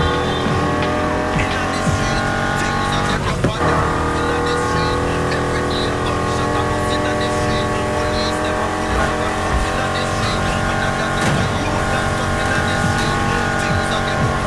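Tyres hiss on the road surface.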